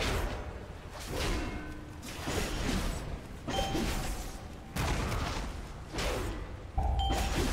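Magic spells whoosh and crackle in bursts during a fight.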